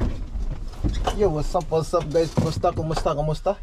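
A man speaks nearby in a calm voice.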